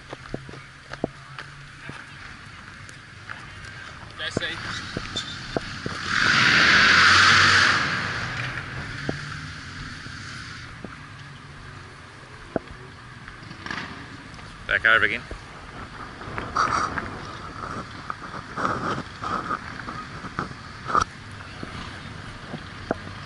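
Wind rushes across an open field, gusting loudly for a moment.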